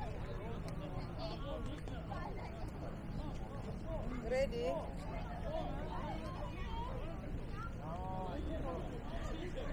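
Many voices of adults and children chatter and call out in the distance.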